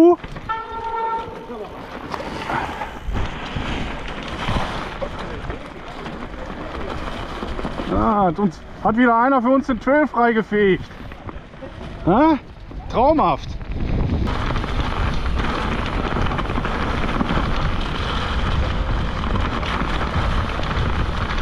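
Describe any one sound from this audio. A bicycle rattles over bumps on the trail.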